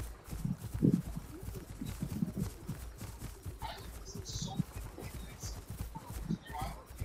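Footsteps of a running animal thud softly on grass.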